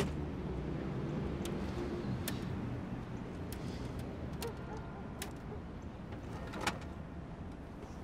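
Typewriter keys clack.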